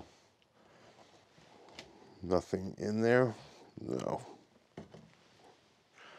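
A scraper scrapes loose insulation off a wooden surface.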